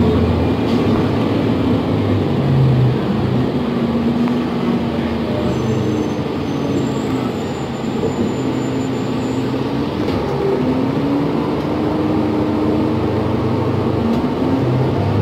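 Tyres roll on the road beneath the bus.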